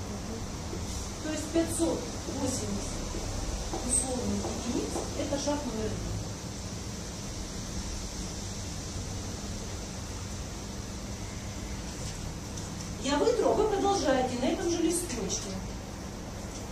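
A middle-aged woman speaks calmly to a group in a small room.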